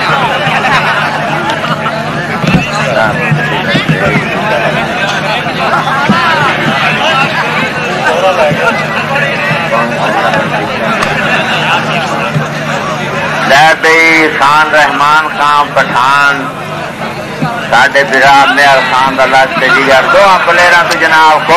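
A crowd of men chatters and murmurs outdoors.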